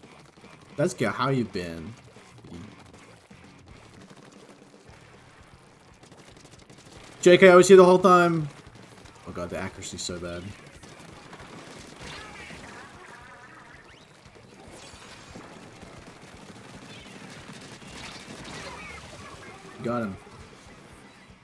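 Video game weapons fire and paint splatters.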